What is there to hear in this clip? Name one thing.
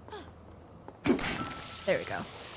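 A fire catches with a sudden whoosh.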